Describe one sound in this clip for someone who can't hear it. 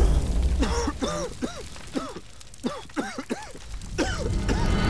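A man groans in pain.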